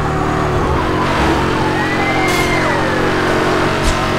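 A police siren wails as the car passes.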